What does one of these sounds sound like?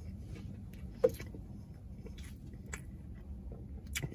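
Crispy fried chicken crackles as fingers pull it apart.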